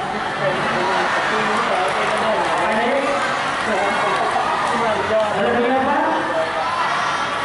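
A crowd of young people chatters and laughs outdoors.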